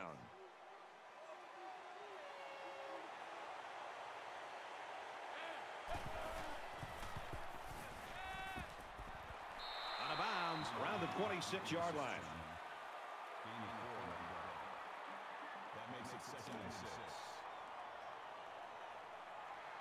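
A stadium crowd cheers and roars.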